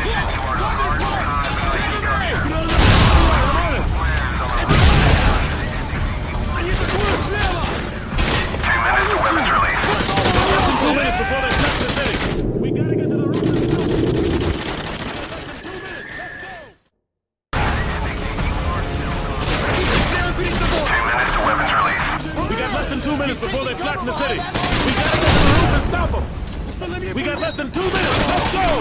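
Gunfire crackles and booms in bursts.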